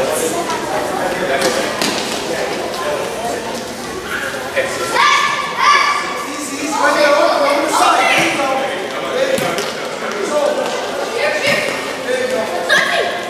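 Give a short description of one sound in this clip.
Children and adults shout and cheer in a large echoing hall.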